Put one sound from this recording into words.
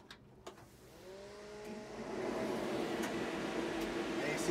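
An electric forklift's motor starts up with a rising whine and a steady hum.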